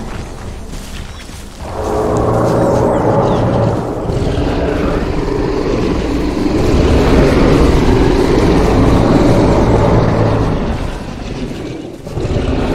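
A large creature's heavy footsteps thud through grass.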